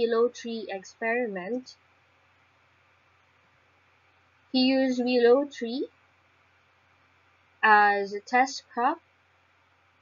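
A young woman speaks calmly into a microphone in short phrases, with pauses.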